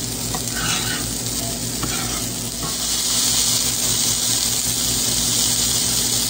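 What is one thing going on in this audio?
A burger sizzles in a hot frying pan.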